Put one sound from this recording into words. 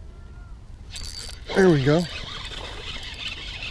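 A fishing reel whirs and buzzes as line is pulled.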